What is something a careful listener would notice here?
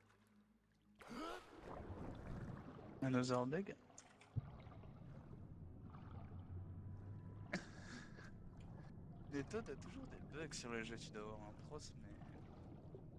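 Water swirls and rushes around a swimmer moving underwater.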